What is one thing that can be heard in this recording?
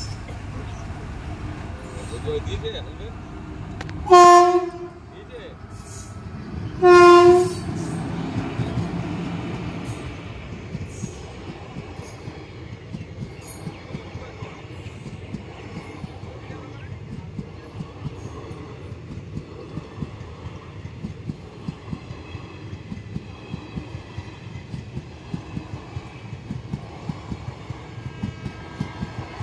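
A train rumbles past close by, its wheels clattering rhythmically over the rail joints.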